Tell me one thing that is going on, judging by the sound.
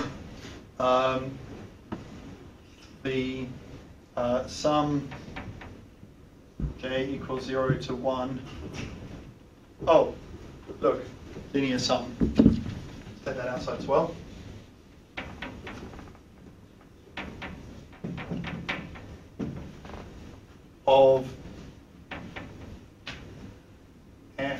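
A man speaks calmly, lecturing.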